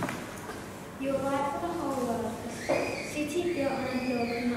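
A woman reads aloud through a microphone in an echoing hall.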